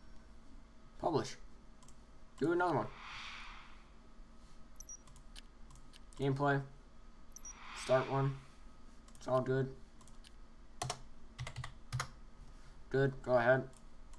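Short bright game chimes sound as menus open and close.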